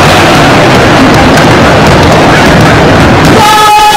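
A body thuds onto a wooden floor.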